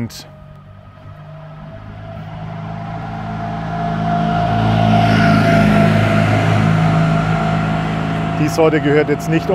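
An old vehicle's engine rumbles as it drives past, growing louder and then fading.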